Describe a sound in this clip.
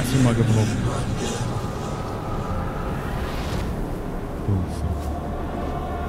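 Flames roar.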